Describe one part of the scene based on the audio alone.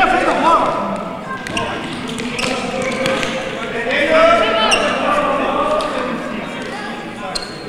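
Children shout and call out across a large echoing gym.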